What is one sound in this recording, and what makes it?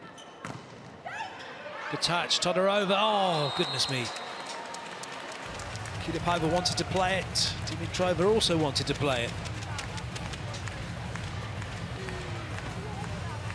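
A large crowd cheers in a big echoing hall.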